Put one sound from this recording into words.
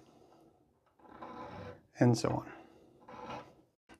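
A small metal file scrapes back and forth across a fret.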